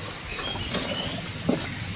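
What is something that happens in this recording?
A cow tears at grass.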